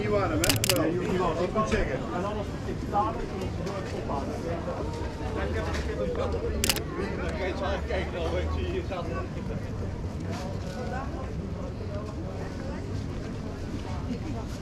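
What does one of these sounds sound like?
A busy street crowd chatters all around, outdoors.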